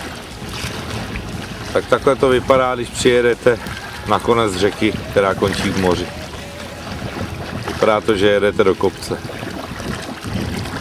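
Choppy water splashes against a moving boat.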